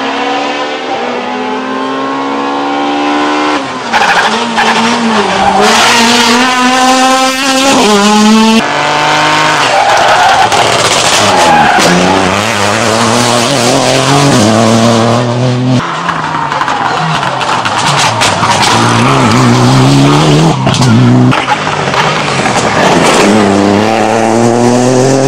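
Rally car engines roar loudly, revving up and down as the cars race past one after another.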